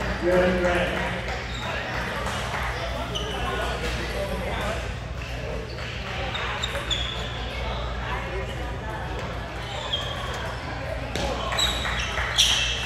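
A ping pong ball clicks back and forth across a table, echoing in a large hall.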